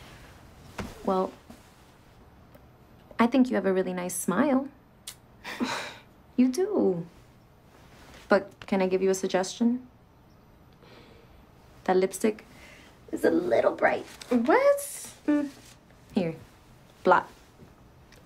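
A young woman speaks quietly and earnestly close by.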